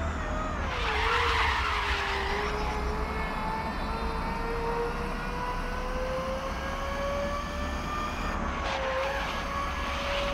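Tyres squeal and skid as a race car takes a bend.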